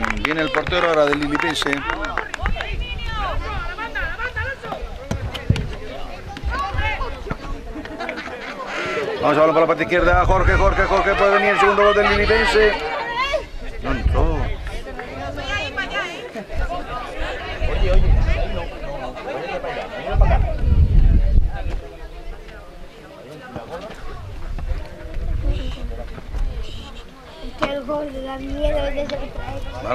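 Children shout and call out across an open pitch.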